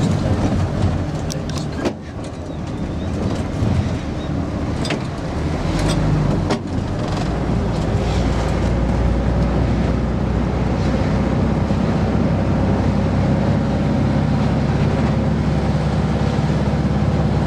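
An old bus engine rumbles and drones steadily from inside the cab.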